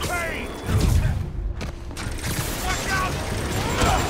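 A metal bin crashes and scatters debris.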